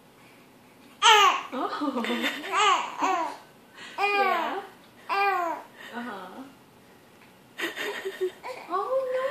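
A young woman talks to a baby in a high, playful voice.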